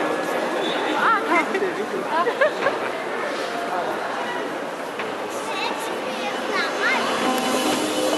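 Men and women call out and shout excitedly from the crowd.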